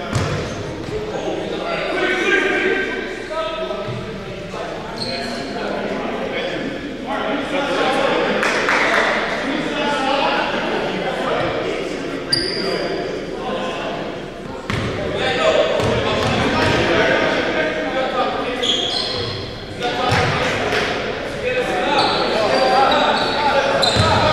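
Young men's voices call out and chatter in a large echoing gym.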